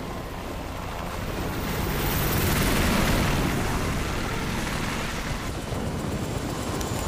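A flying craft's engines roar loudly and pass overhead.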